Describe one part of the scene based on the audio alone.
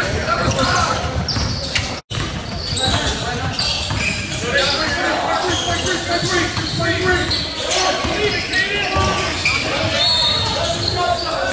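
Sneakers squeak on a hard court in an echoing gym.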